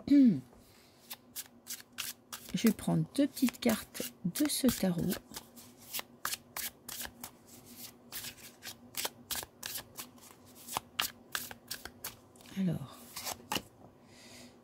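Playing cards riffle and flick quickly as a deck is shuffled.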